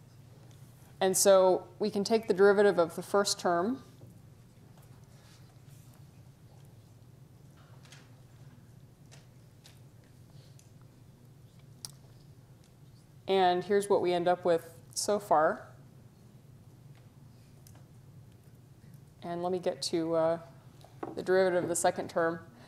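A woman lectures calmly through a microphone, with long pauses.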